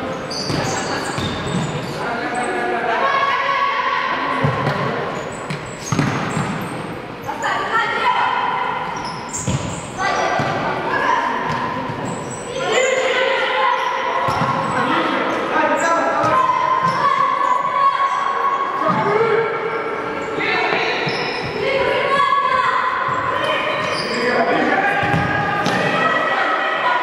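Young women players shout to each other across an echoing hall.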